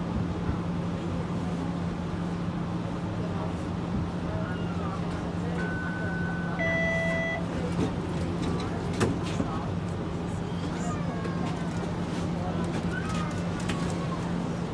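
A tram hums steadily as it rolls along a street.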